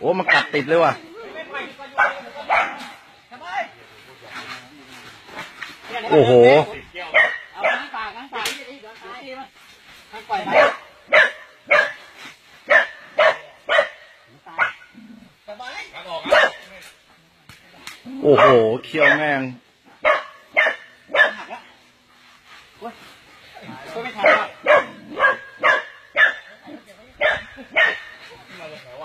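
Men talk and shout excitedly nearby, outdoors.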